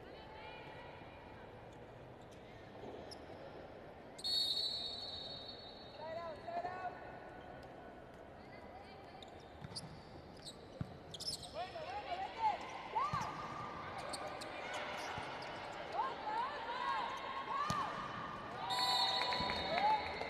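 A large indoor crowd murmurs and cheers in an echoing hall.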